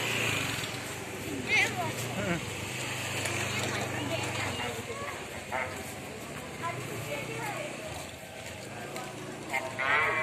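A cow chews grass close by.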